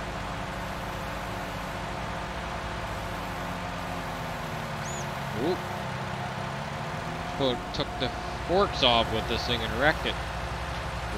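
A small loader's diesel engine hums steadily.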